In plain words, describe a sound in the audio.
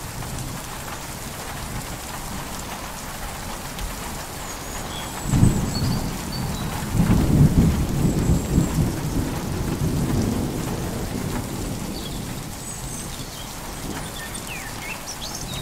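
Waves wash and break against a rocky shore.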